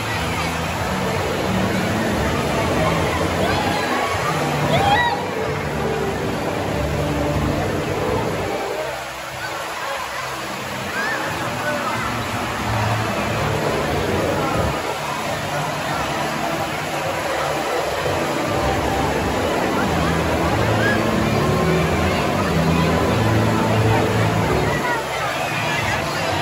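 A crowd of adults and children chatters and shouts in a large echoing hall.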